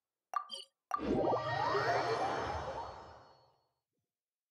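A game chime swells and rings out, then fades.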